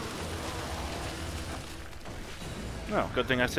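A monster growls and snarls up close.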